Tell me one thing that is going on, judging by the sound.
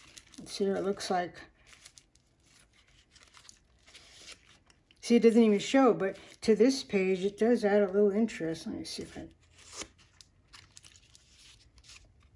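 Stiff paper pages rustle softly as they are turned.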